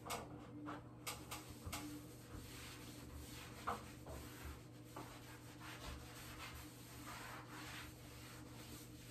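A sponge wipes and scrubs over tiles.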